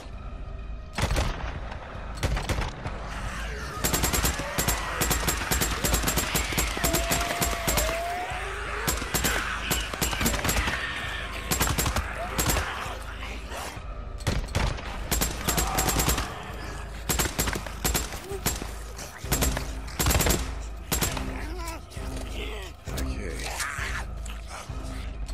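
Creatures snarl and shriek.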